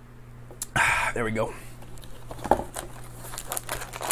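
Cardboard flaps rustle as a box is opened.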